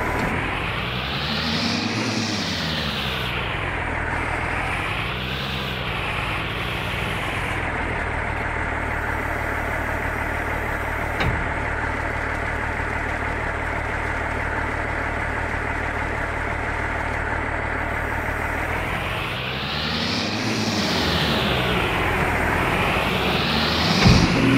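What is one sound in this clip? A loader's diesel engine rumbles steadily.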